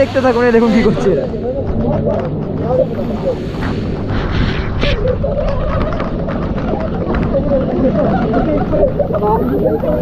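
Several men and women talk and laugh together close by.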